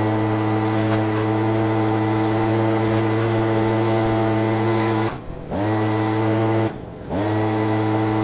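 A leaf blower engine drones loudly and steadily, briefly dropping off twice and revving back up.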